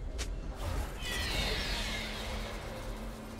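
A game chime sounds for an announcement.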